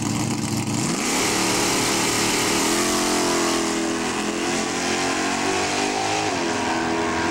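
A car engine roars and rises in pitch as the car speeds away.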